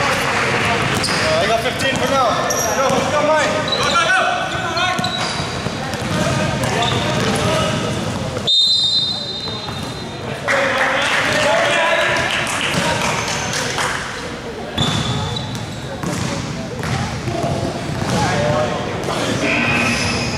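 Young men shout and call out across the court.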